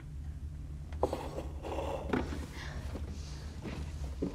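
Hands rustle and shuffle through things in a box close by.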